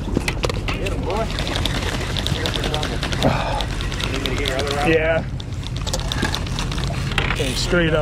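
A fishing reel clicks and whirs as line is reeled in.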